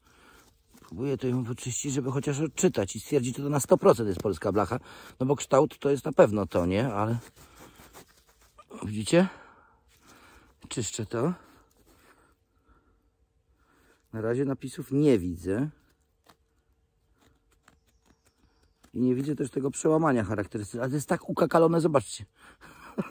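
A middle-aged man talks calmly close by, in bursts with pauses.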